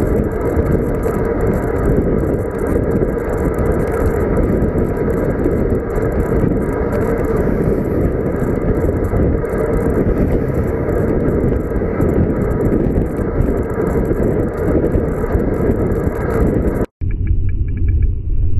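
Wind buffets loudly against a microphone outdoors.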